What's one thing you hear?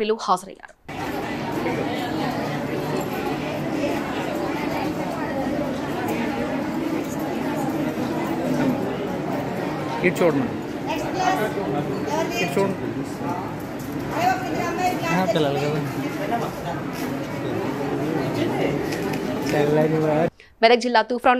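People talk together nearby.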